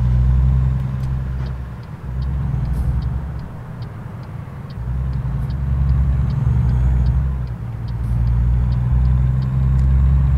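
A truck's turn signal ticks evenly.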